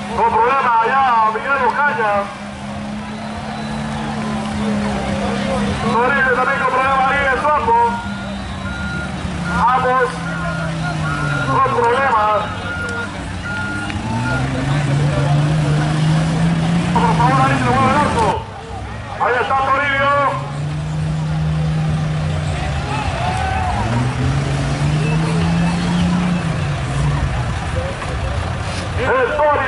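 Men in a crowd nearby shout with excitement.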